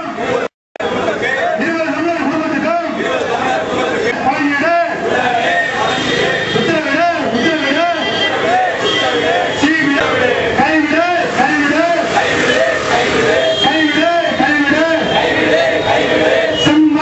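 A crowd of men chants slogans loudly in unison outdoors.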